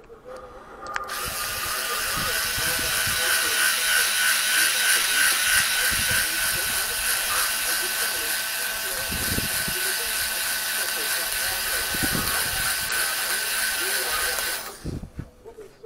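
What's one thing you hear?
A heat gun blows with a steady, loud whirring roar, then shuts off.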